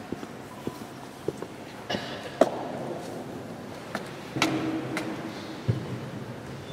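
Footsteps echo in a large, reverberant hall.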